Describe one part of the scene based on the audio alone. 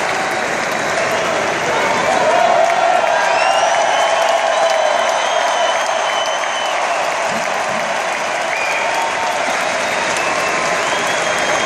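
A huge crowd cheers and sings loudly in a large open arena.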